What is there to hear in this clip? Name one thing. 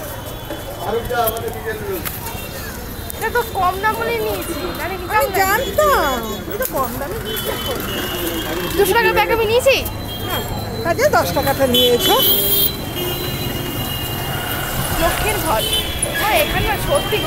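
People chatter in a busy street.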